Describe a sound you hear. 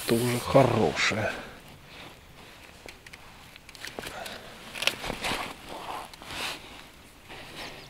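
A landing net rustles and scrapes against dry reeds.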